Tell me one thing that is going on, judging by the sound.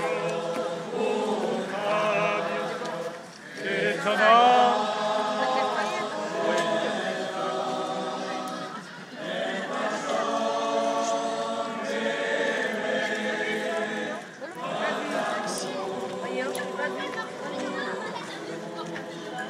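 A large crowd sings together outdoors, in phrases with short pauses.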